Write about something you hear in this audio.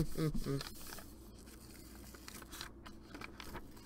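Paper rustles and slides against a table.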